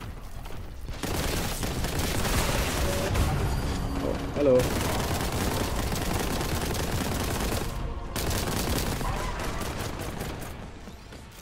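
A gun fires rapid bursts of shots.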